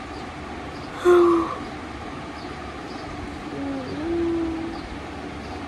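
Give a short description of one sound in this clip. A baby coos softly.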